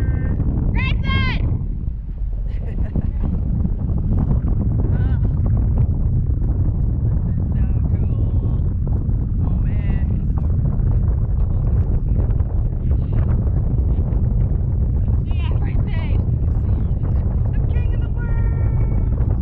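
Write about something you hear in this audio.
Wind roars steadily against a microphone high in the open air.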